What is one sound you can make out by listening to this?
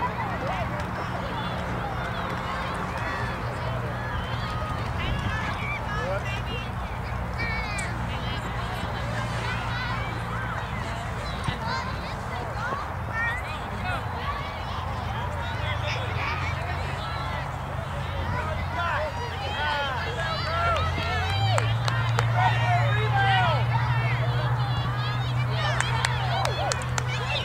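Players and spectators shout and call out faintly across an open field.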